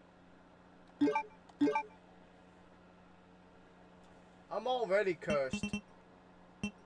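Short electronic menu chimes beep as a selection moves.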